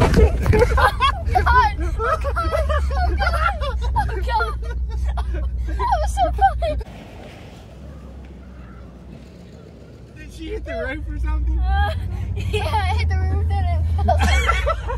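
A teenage boy laughs loudly.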